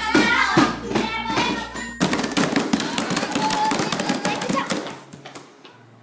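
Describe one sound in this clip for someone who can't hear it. Hands tap and bang on a table.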